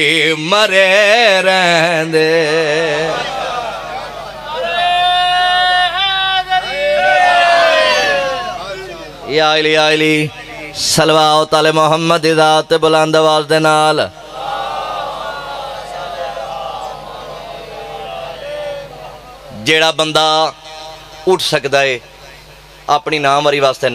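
A young man recites loudly and with passion into a microphone, heard through loudspeakers.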